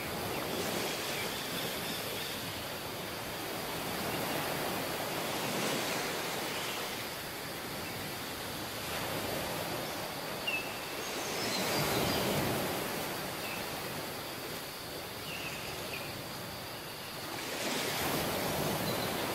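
Waves break and wash up on a sandy shore in surges.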